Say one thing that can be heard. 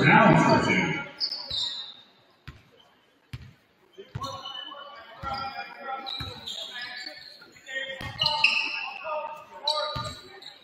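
A basketball bounces on a hard floor, echoing.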